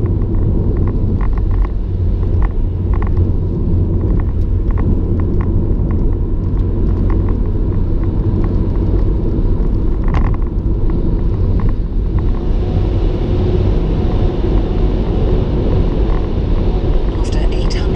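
A car engine drones steadily with a low road rumble.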